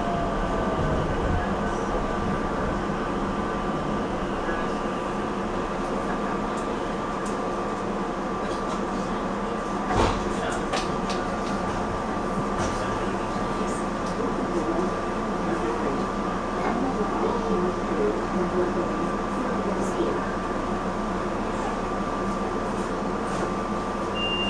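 A train rumbles steadily along the tracks.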